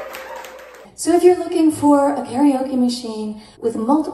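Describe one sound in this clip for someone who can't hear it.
A young woman speaks calmly and closely into a microphone.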